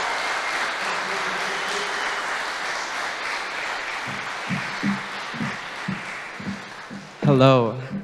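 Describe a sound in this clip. An audience applauds in a large echoing room.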